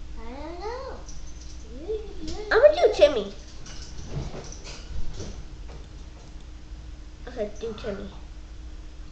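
A young child talks excitedly close to a microphone.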